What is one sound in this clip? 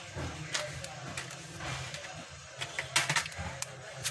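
A small card tray clicks softly into a phone.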